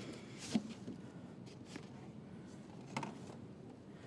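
A cardboard box bumps and scrapes as it is set down.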